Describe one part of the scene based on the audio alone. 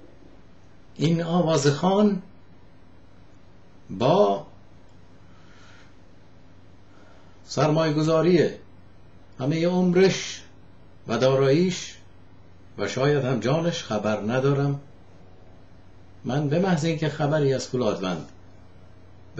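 A middle-aged man speaks calmly and slowly into a nearby microphone, in short phrases with pauses.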